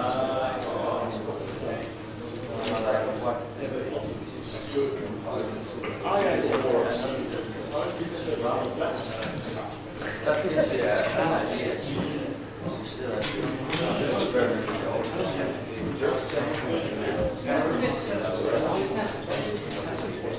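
Several adult voices chatter and murmur in a large room.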